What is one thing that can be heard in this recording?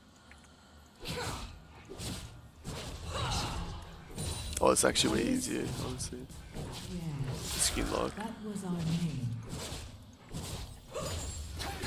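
Video game spells burst and crackle in a fast fight.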